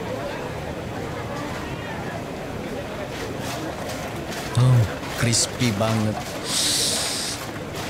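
A busy outdoor crowd murmurs in the background.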